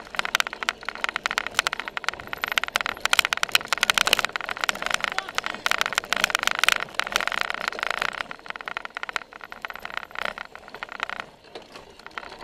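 A bicycle rattles and clatters over bumpy grass.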